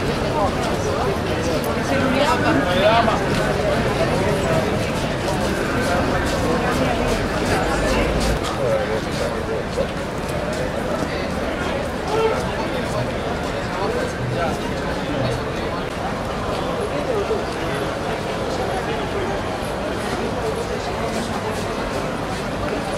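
A crowd murmurs and chatters outdoors in a busy square.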